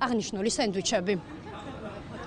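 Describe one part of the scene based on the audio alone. A young woman speaks clearly into a microphone, as a news reporter.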